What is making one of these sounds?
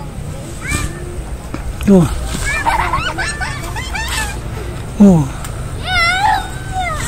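Young boys shout and call out excitedly nearby outdoors.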